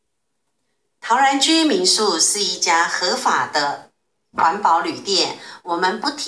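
A woman sings loudly into a microphone.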